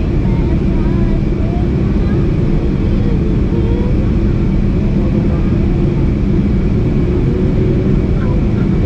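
Jet engines roar with a steady, deep drone inside an airliner cabin.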